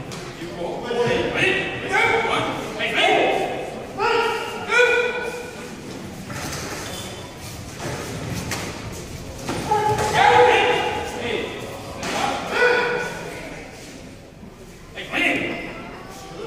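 Martial arts fighters shout sharp kiai in a large echoing hall.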